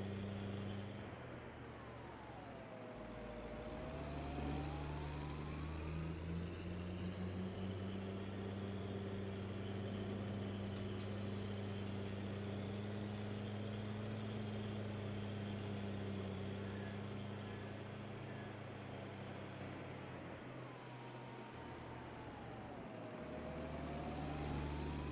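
Tyres roll over a rough track.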